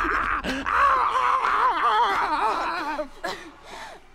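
A man growls and cackles in a warbling, distorted voice close by.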